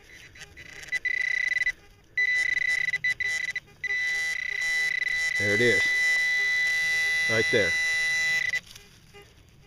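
A metal detector gives off a steady, high-pitched electronic tone that cuts in and out.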